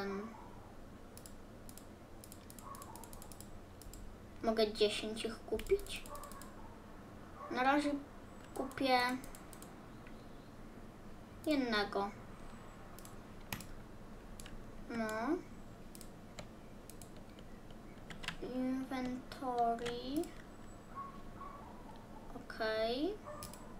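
Short game clicks sound as menu buttons are pressed.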